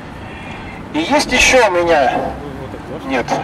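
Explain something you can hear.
A young man speaks with animation outdoors to a small group.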